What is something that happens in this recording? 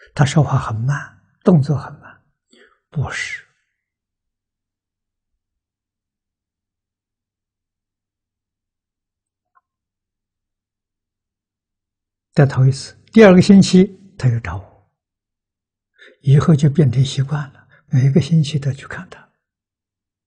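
An elderly man speaks calmly and warmly into a close microphone, with long pauses.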